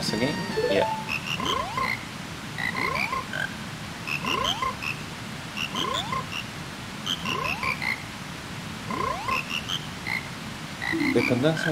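Cartoon frogs croak in a steady, repeating rhythm.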